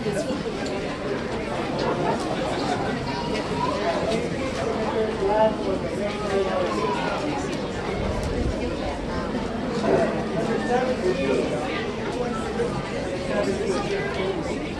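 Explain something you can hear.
A brass band plays a festive tune outdoors.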